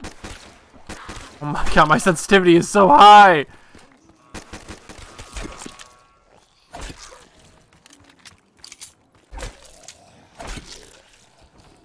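Gunshots crack in a game.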